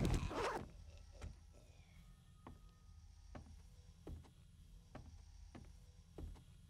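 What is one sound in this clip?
Footsteps thud steadily across hollow wooden boards.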